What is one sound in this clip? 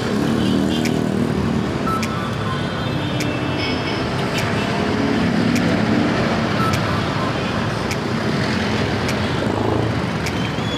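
Motorcycles and vehicles rumble past on a busy street.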